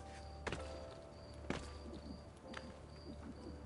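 Hands grab and thump against stone while climbing.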